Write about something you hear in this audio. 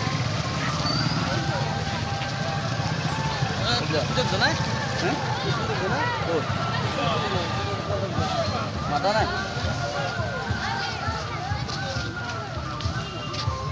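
A crowd of women chant devotional songs together.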